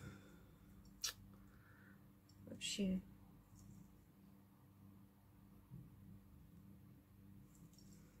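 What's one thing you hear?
Small metal jewellery clicks softly close by.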